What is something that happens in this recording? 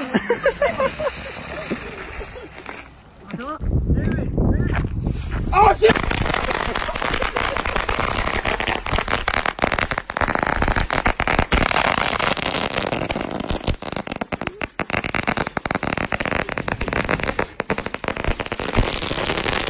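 Firecrackers hiss and crackle in rapid bursts outdoors.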